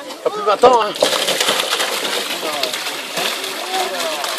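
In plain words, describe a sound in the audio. Water splashes loudly as fish are poured into a trough.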